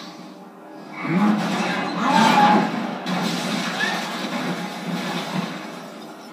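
A loud roaring crash of a house being torn apart swells and slowly fades.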